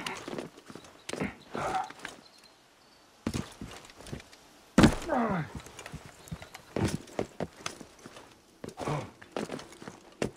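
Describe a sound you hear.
Hands scrape and thud against a stone wall while climbing.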